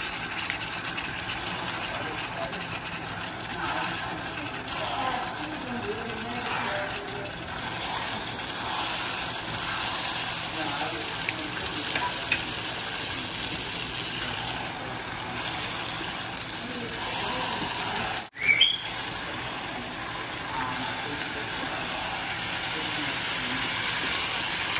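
A spatula scrapes and stirs noodles in a metal pan.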